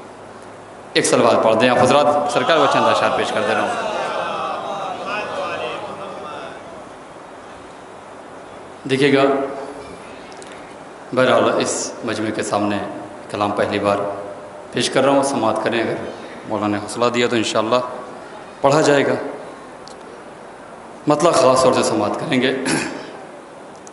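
A young man recites with feeling into a microphone through loudspeakers in an echoing hall.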